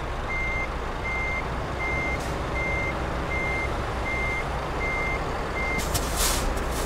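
A truck's reversing alarm beeps at an even pace.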